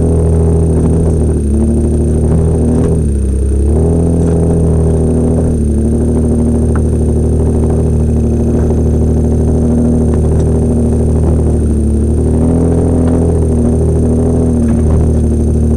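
Stones crunch and knock under tyres.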